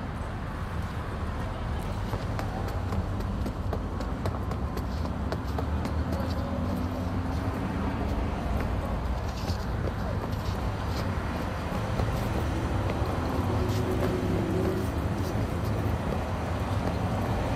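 Footsteps tap on pavement at a brisk pace.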